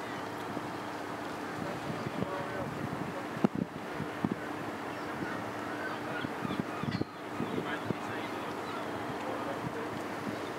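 A large ship's engine hums steadily close by.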